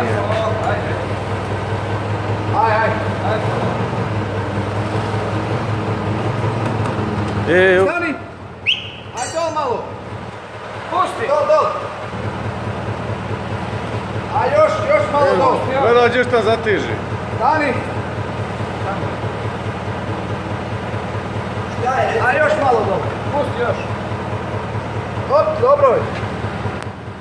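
A man talks nearby in short, casual phrases.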